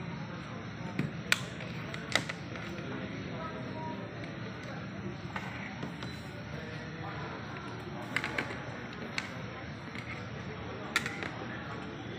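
Hard plastic knocks and clicks as a laptop is handled.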